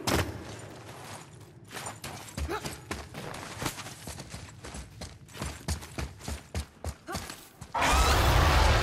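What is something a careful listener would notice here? Footsteps crunch over snow and rock.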